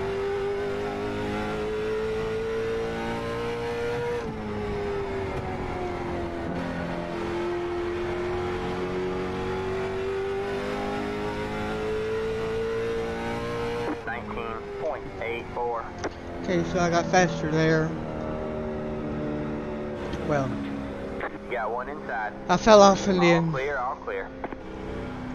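A racing car engine drones steadily, rising and falling in pitch.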